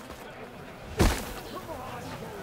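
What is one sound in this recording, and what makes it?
A heavy blow lands with a loud thump.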